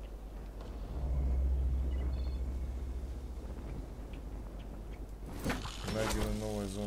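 A metal pulley hums and rattles as it slides fast along a cable.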